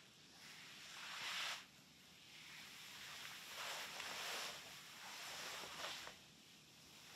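Fabric rustles softly up close.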